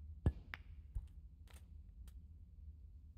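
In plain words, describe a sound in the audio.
Snooker balls click against each other.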